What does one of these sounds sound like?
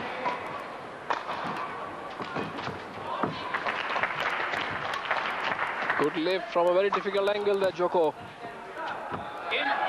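A shuttlecock is struck sharply by rackets in a quick rally.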